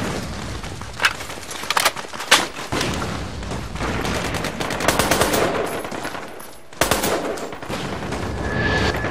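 A rifle fires several sharp shots.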